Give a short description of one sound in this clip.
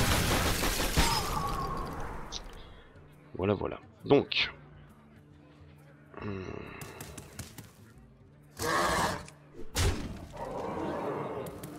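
Fantasy card game sound effects whoosh, chime and clash in bursts.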